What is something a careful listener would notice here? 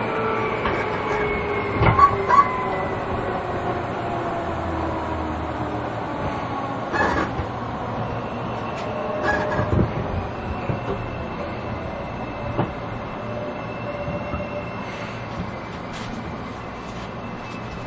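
Train brakes squeal with a falling whine.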